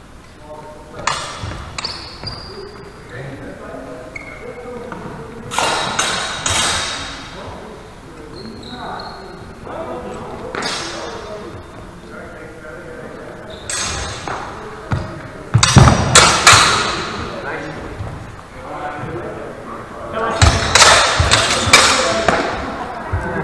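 Steel swords clash and clatter sharply in a large echoing hall.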